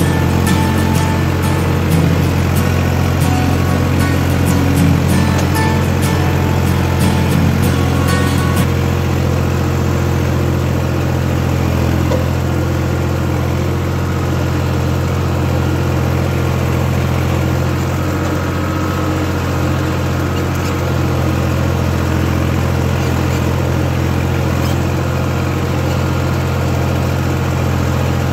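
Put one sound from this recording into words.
Soil and clods crunch under the tractor's wheels.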